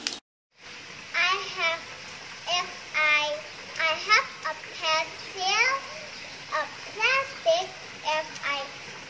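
A young girl speaks brightly and with animation, close by.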